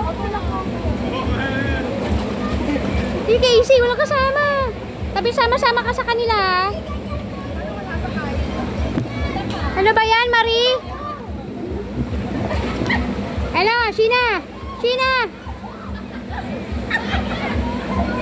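Water splashes and laps steadily.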